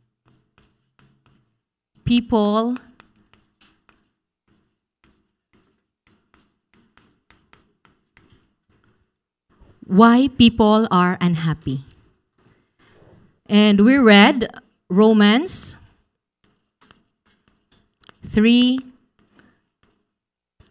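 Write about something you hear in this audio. Chalk taps and scrapes faintly on a board.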